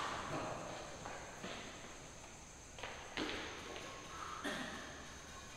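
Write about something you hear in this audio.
Badminton rackets strike a shuttlecock back and forth indoors.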